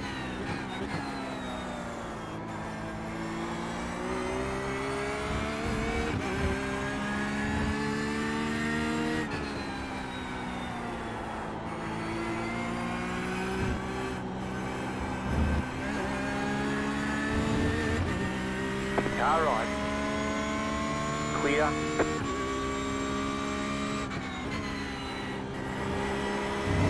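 A racing car engine roars, rising in pitch through each gear and dropping at gear changes.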